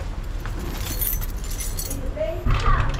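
A door handle is pressed down with a click.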